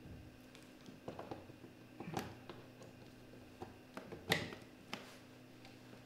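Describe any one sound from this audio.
Small plastic parts click and knock.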